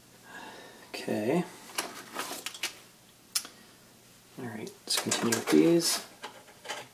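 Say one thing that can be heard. A sheet of paper rustles and crinkles.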